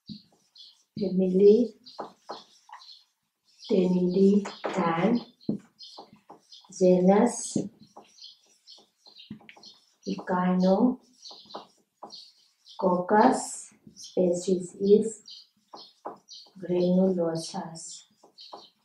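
A woman speaks calmly and clearly nearby, in short phrases.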